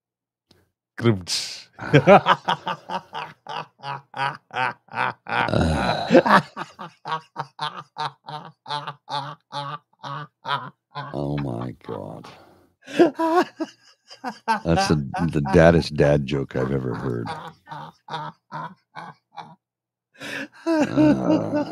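A man laughs loudly and heartily over an online call.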